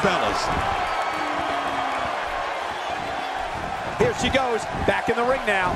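A crowd cheers and roars loudly in a large arena.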